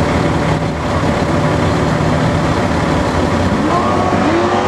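Race car engines rumble loudly at idle.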